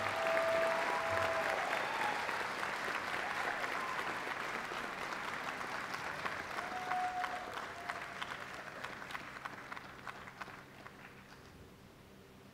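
A large audience applauds in a big echoing hall, slowly fading.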